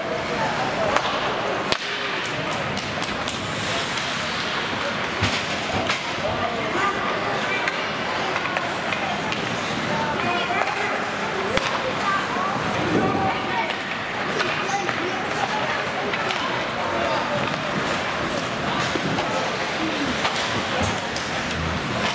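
Hockey sticks clack against the puck with sharp knocks.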